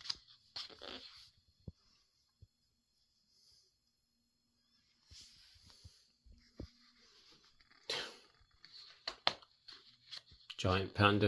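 Paper pages rustle as a book's pages are turned by hand.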